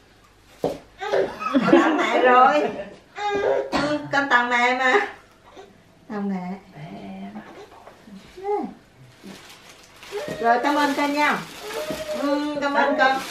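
A young woman talks cheerfully and laughs close by.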